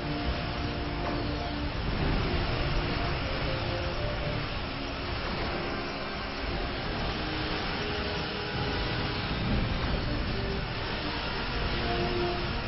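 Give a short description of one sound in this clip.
Laser weapons fire in rapid zaps.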